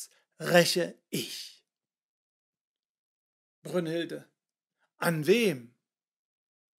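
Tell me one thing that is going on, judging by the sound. A middle-aged man reads aloud expressively, with pauses, heard close to a microphone.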